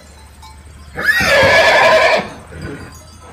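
A pony whinnies loudly.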